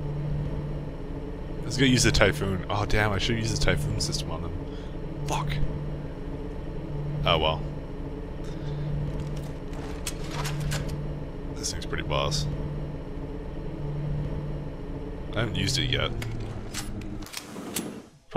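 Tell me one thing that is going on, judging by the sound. A lift hums steadily as it rides.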